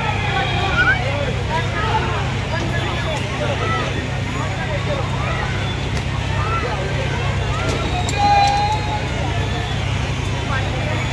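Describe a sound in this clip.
A carousel of ride-on cars turns with a steady low rumble.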